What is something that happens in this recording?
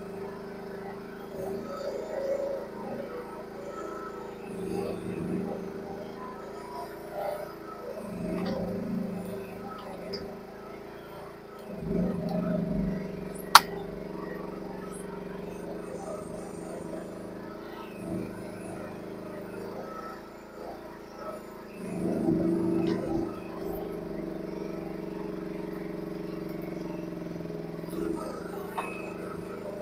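A small excavator's engine hums steadily close by.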